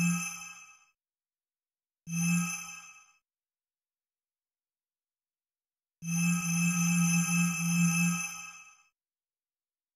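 Bright chiming menu tones ring out in short bursts and fade.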